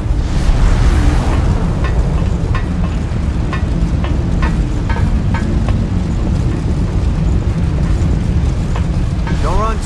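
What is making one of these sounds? Fire roars and rumbles low and steadily.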